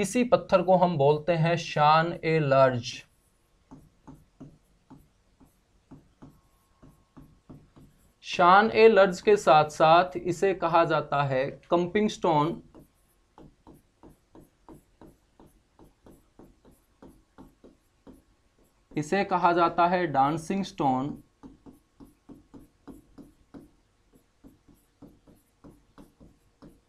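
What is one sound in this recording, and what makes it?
A marker taps and scratches on a board.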